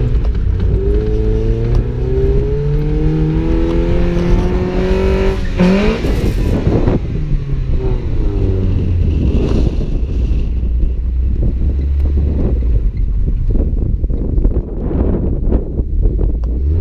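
A car engine revs hard and roars as it accelerates.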